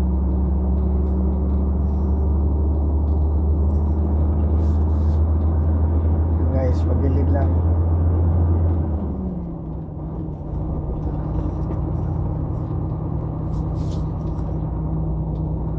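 A heavy engine drones steadily from inside the cab and drops in pitch.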